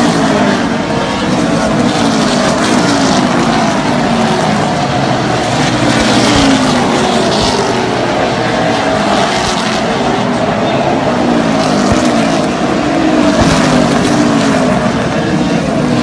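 Several race car engines roar loudly, their pitch rising and falling as they pass.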